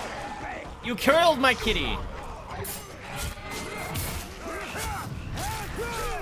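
Swords clash and strike in quick bursts.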